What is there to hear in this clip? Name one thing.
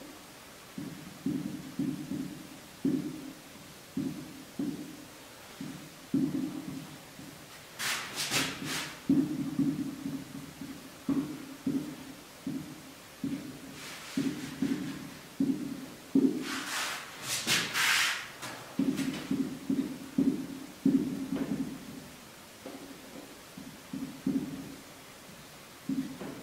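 A man speaks steadily, explaining close by.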